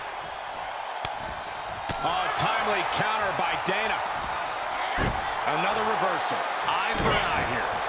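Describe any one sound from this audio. Punches and body slams land with sharp thuds.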